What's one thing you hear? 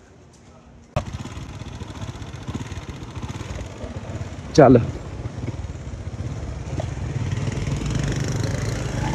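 A motorbike engine rumbles steadily while riding outdoors.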